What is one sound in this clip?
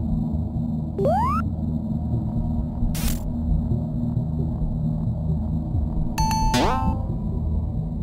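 A game character jumps with a short rising chirp.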